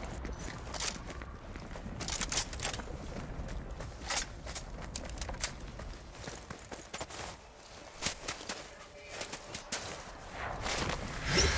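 Footsteps patter quickly.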